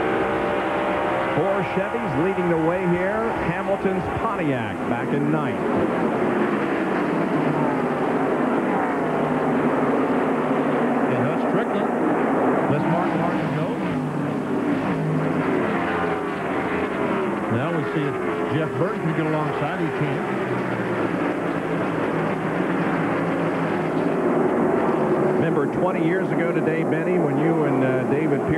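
Race car engines roar loudly at high speed.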